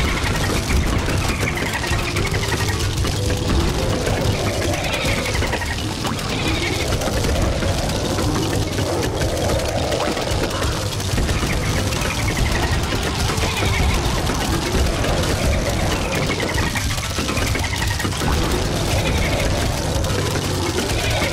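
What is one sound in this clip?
Explosions burst with a dull boom, again and again.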